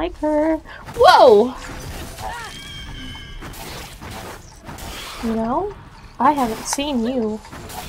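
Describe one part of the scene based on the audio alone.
A young woman squeals and exclaims in a high voice.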